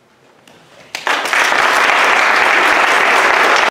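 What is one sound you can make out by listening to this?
An audience bursts into loud applause.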